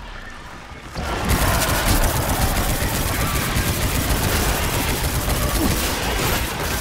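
Loud magical blasts crackle and roar.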